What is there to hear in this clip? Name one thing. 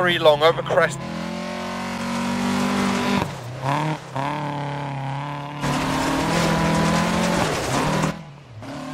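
Tyres crunch and skid on snowy gravel.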